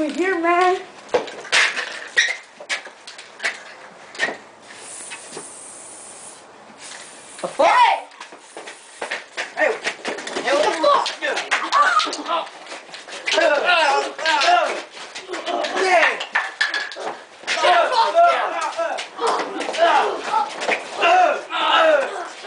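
Young men talk and shout with excitement close by.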